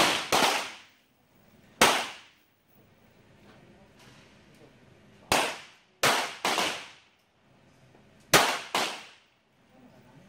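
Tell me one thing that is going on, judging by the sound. Several .22 semi-automatic pistols fire sharp shots, which ring out across an outdoor range.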